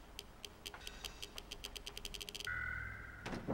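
Light footsteps patter quickly on a hard floor.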